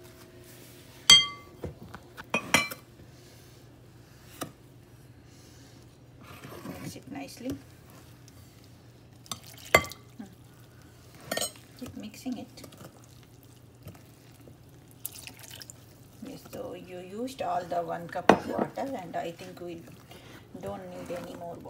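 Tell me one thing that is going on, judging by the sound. A metal spoon scrapes and clinks against a glass bowl.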